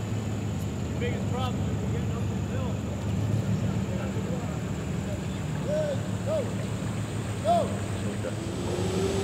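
A pickup truck drives slowly through floodwater.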